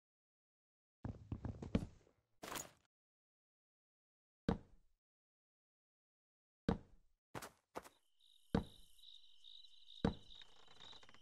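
Wooden blocks knock dully as they are set in place, one after another.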